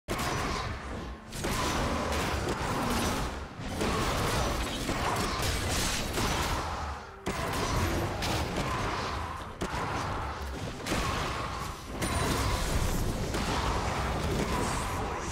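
Game sound effects of magic blasts and strikes zap and crackle.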